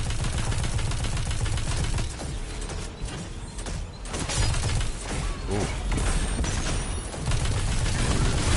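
Energy blasts crackle and boom.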